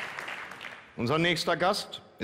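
A man speaks to an audience through a microphone.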